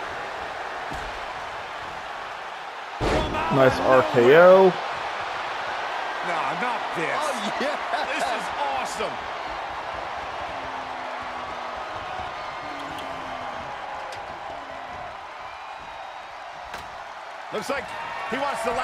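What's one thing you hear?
Heavy thuds of bodies hitting a wrestling mat ring out.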